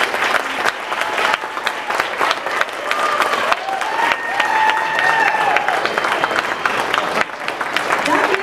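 An audience claps and cheers loudly in a room.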